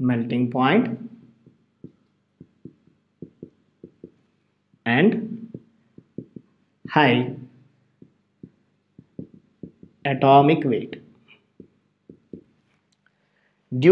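A man speaks in short phrases, like a teacher explaining.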